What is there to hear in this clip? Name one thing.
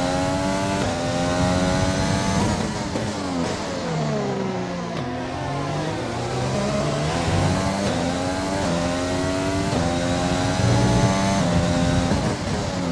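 A racing car engine screams at high revs, dropping in pitch as it slows into a corner and rising again as it speeds away.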